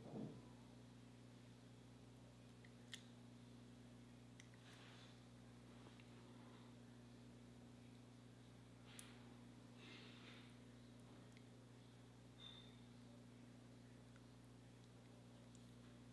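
A pencil softly scratches across lips.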